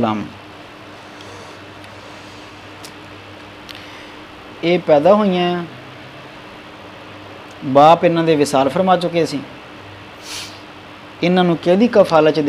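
A man chants a melodic recitation into a microphone close by, in phrases with pauses between them.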